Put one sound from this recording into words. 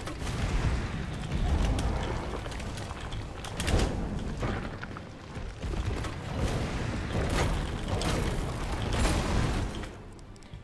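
Explosions boom and roar repeatedly.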